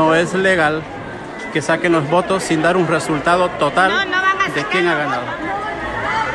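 A large crowd chants loudly in unison in an echoing hall.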